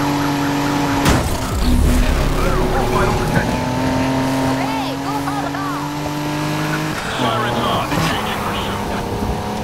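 Tyres screech as a car drifts through a turn.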